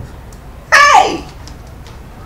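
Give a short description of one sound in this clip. A woman cries out sharply, her voice falling.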